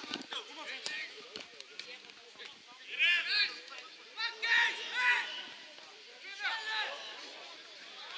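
Football players shout to each other across an open field.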